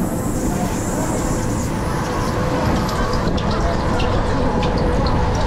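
A ride rumbles and rattles loudly close by.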